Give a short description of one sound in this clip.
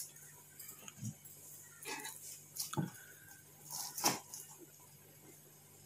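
A knife taps and scrapes against a plate.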